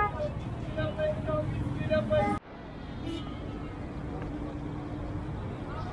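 A crowd of people chatters and calls out outdoors.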